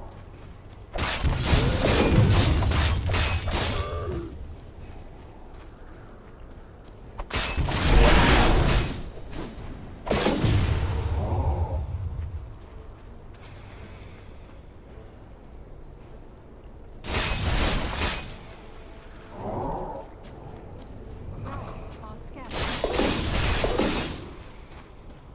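Spell effects crash and whoosh in loud bursts.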